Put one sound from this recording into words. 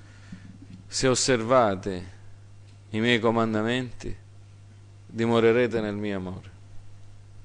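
A middle-aged man speaks slowly and expressively through a microphone, with long pauses.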